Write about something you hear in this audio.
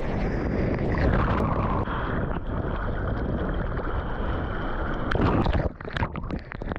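A wave rolls and breaks nearby with a deep roar.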